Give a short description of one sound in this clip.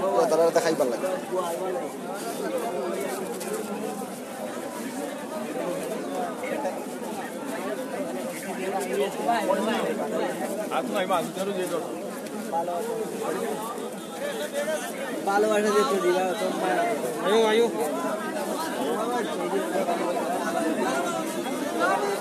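Many men talk and call out in a busy, noisy crowd nearby.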